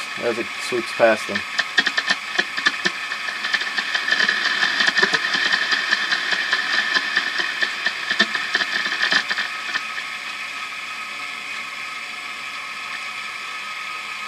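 A radio receiver hisses with steady static.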